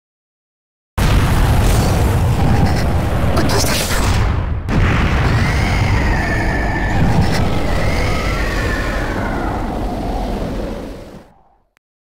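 A deep, thundering roar rumbles loudly and then fades away.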